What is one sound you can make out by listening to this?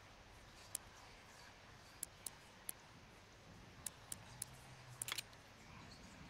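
Combination lock dials click softly as they turn.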